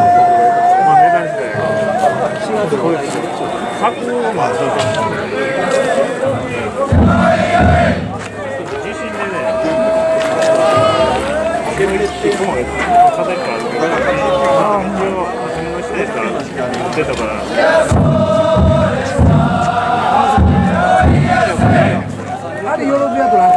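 A group of men chant together loudly outdoors.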